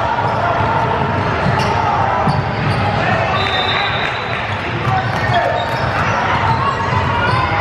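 Many voices chatter and call out in a large echoing gym.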